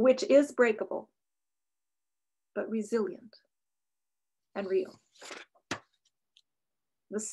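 An older woman speaks calmly and close to a microphone, with pauses.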